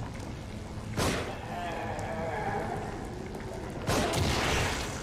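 A gunshot bangs sharply.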